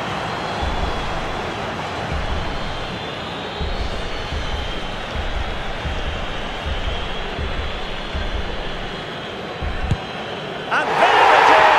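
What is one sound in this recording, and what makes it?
A large stadium crowd chants and cheers.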